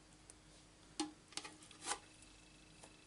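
Paper tape crinkles and peels off a plastic surface.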